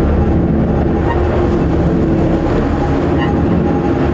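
A car drives slowly over snow.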